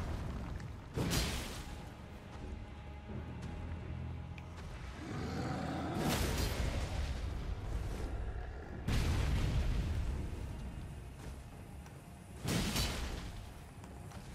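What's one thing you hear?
A large creature stomps and crashes heavily to the ground.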